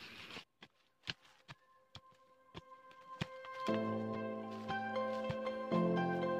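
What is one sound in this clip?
A blade scrapes and chops into dirt.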